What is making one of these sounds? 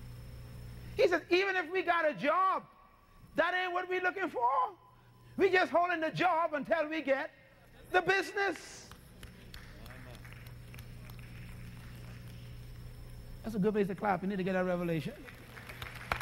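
A man speaks with animation through a microphone, in bursts with pauses.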